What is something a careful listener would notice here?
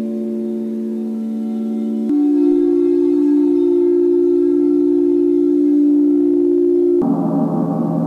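Crystal singing bowls ring with a steady, humming tone.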